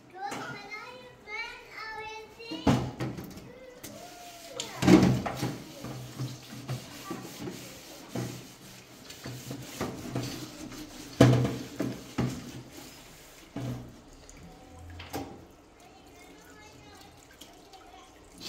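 A woman scrubs a pan with a sponge.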